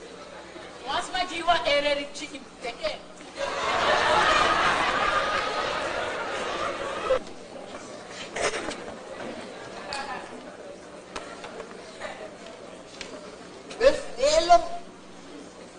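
A man speaks loudly on stage in a hall with echo.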